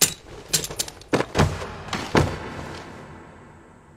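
A man falls heavily to the floor with a thud.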